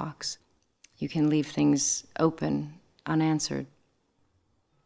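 A man speaks quietly.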